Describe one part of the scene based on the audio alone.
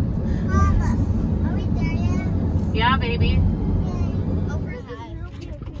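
A car rumbles steadily along a road.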